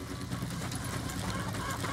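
Chickens cluck close by.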